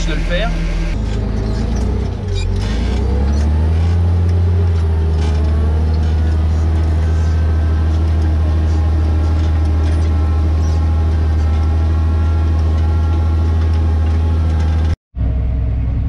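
A tractor engine drones loudly as a cultivator works the soil.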